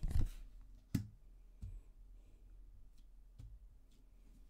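Cards tap and slide on a wooden table.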